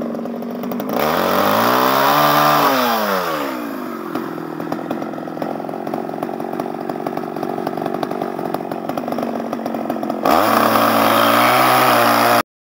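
A chainsaw revs and cuts into wood.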